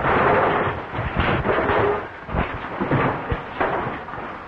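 Fist blows land with heavy thuds in a scuffle.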